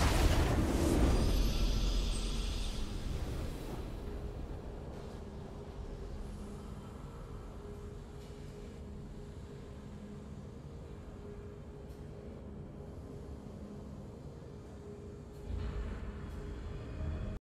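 A victory fanfare plays and fades.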